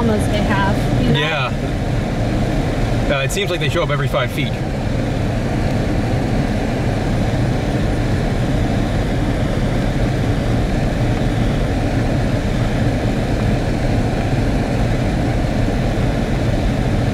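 Tyres roll slowly over a gravel road, heard from inside a car.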